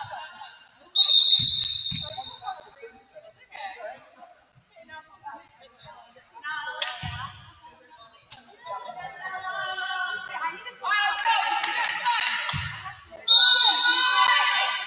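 A referee's whistle blows short and shrill.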